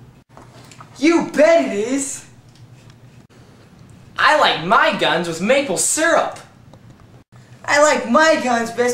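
Another teenage boy talks close by.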